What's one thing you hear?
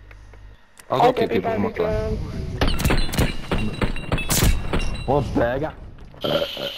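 Gunshots boom in short, sharp blasts.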